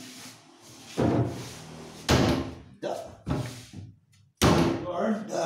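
Wooden boards knock and bump.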